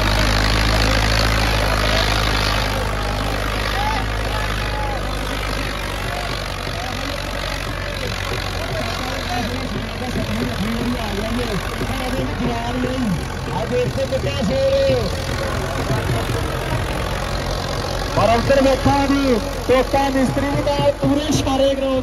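A tractor engine roars and rumbles steadily.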